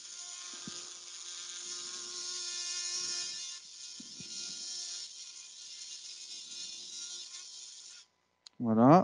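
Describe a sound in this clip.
A motorized surgical shaver whirs with a steady high hum.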